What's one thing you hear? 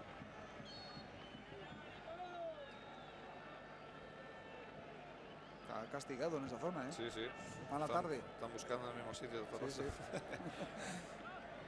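A large stadium crowd murmurs and roars.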